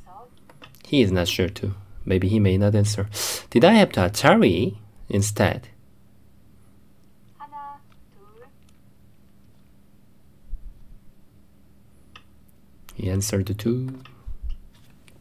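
A young man speaks calmly into a close microphone, in bursts with pauses.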